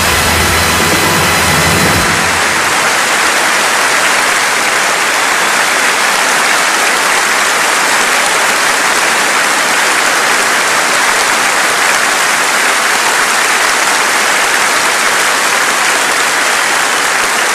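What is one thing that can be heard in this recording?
A large audience applauds loudly and steadily in a big hall.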